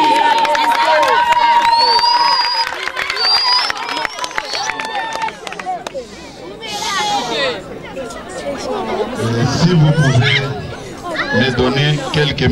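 A crowd chatters and shouts loudly outdoors.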